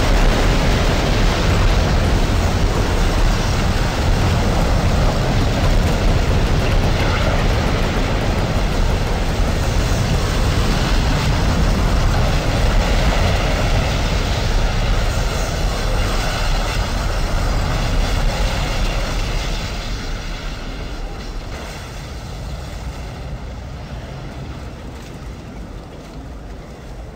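Strong wind roars loudly and steadily, then slowly fades.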